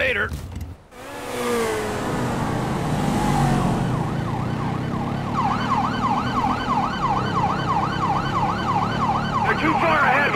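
A motorcycle engine roars steadily as it rides along.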